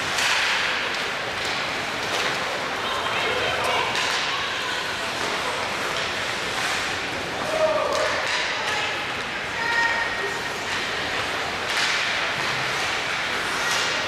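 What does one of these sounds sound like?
Spectators chatter and call out from the stands.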